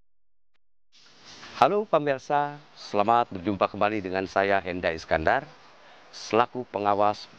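A middle-aged man speaks calmly and clearly, close by.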